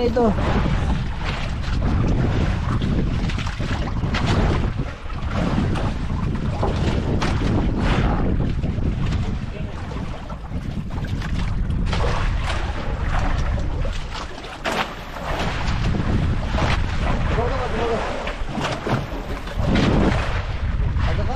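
Waves slosh against the hull of a small boat.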